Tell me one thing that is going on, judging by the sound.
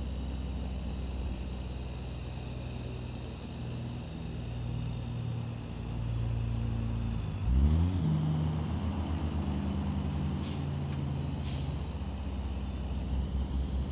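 A truck engine hums steadily and shifts gears.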